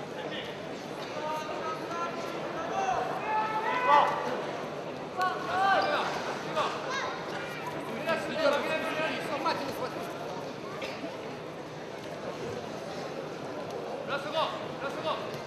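Spectators shout and call out loudly.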